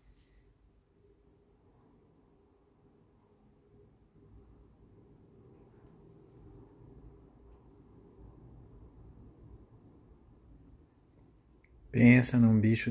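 A cat purrs softly and steadily close by.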